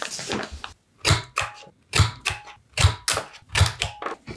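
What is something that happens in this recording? A paper punch thumps repeatedly with sharp clicks.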